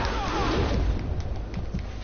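A burst of gas hisses loudly.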